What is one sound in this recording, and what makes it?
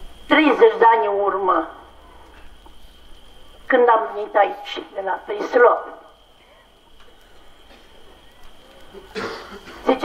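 A man chants into a microphone, heard through a loudspeaker in a reverberant space.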